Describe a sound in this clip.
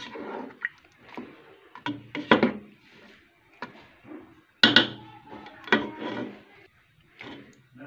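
A metal spoon scrapes and stirs inside a pot.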